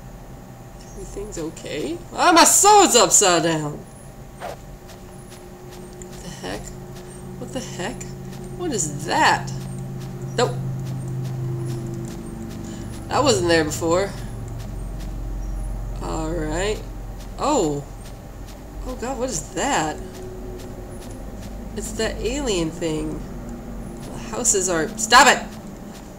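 A young woman talks casually into a close microphone, in bursts.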